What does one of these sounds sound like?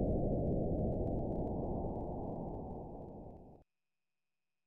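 A low rumbling game sound effect plays and fades.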